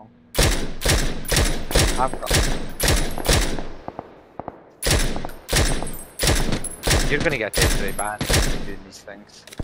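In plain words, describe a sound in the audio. Rifle shots fire in quick bursts, each ringing off briefly.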